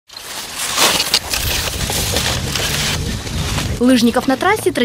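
Skis swish and scrape across crunchy snow.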